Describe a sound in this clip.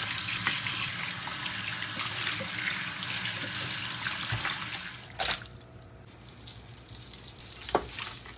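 Hands squelch and rub wet meat.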